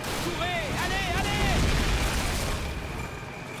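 A grenade explodes with a deep boom.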